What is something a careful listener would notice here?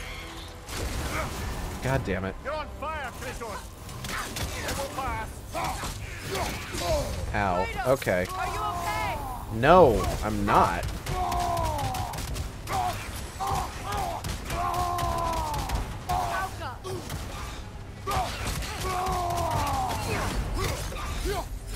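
Heavy blows strike and crash in a fight.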